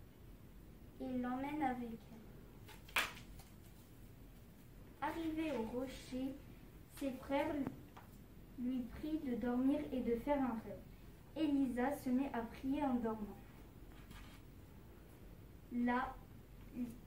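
A girl speaks calmly nearby, in short phrases.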